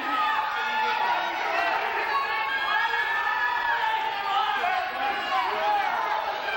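A crowd of spectators shouts and cheers in an echoing gym.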